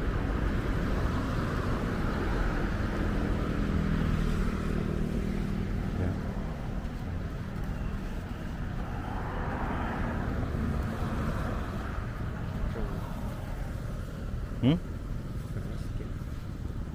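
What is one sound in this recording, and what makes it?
Wind blows steadily outdoors.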